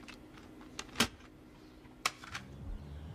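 A plastic disc case clicks as it is handled.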